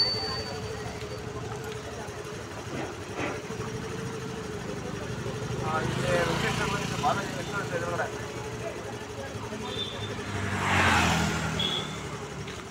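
A scooter engine hums close by as it passes.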